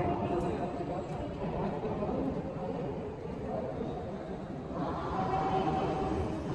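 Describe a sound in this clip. Distant voices murmur and echo in a large hall.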